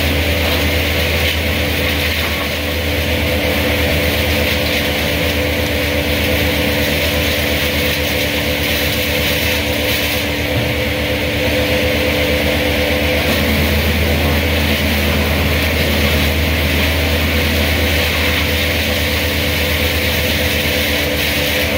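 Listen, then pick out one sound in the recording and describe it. A chainsaw roars steadily as it cuts through wood high overhead.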